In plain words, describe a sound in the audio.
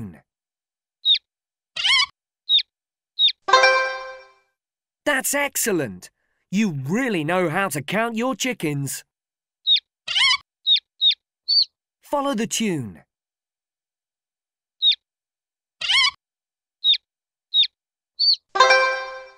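Cartoon chicks peep in short high chirps.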